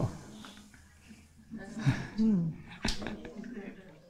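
A man laughs softly.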